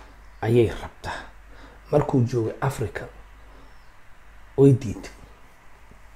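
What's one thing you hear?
A young man speaks calmly and close up, in short bursts.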